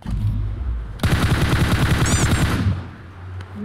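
Rapid gunfire rattles in a burst.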